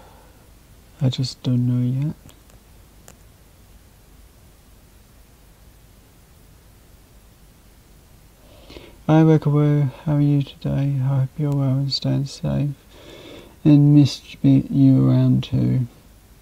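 A young man speaks casually into a close microphone, in short bursts with pauses.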